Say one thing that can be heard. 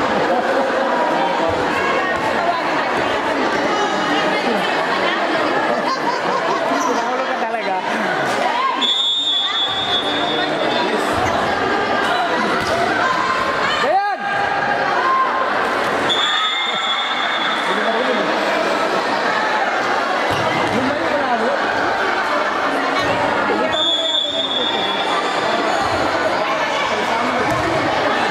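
Spectators chatter and cheer in a large echoing hall.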